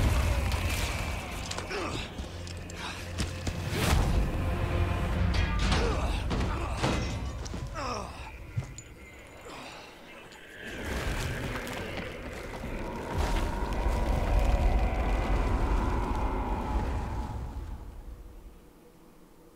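Deep rumbling and crashing sounds play loudly.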